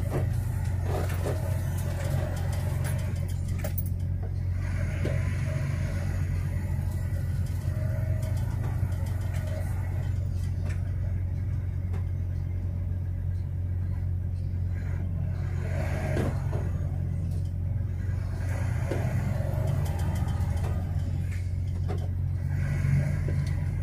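A vehicle engine hums steadily from inside a moving vehicle.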